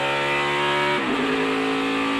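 A race car's engine briefly drops in pitch during a gear shift.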